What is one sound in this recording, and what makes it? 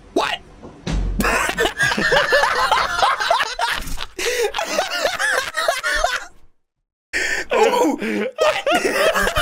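Two young men laugh loudly into microphones.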